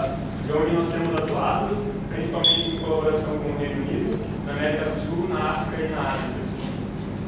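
A middle-aged man speaks calmly, a little way off.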